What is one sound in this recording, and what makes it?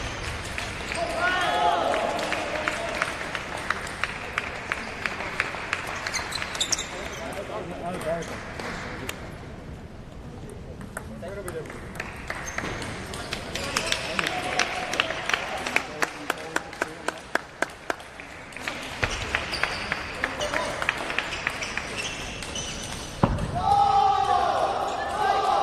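Young men shout with excitement between rallies.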